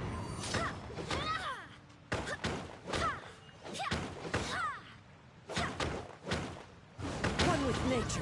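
A sword swishes through the air in quick slashes.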